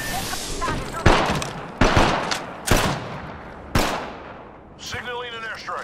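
Metal clicks sharply as a gun is reloaded.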